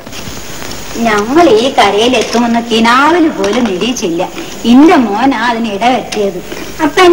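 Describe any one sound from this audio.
A woman sings a melodious song.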